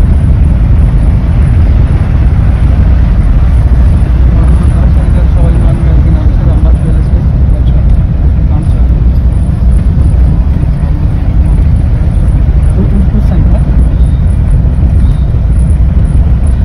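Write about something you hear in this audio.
A vehicle rumbles steadily along a gravel road.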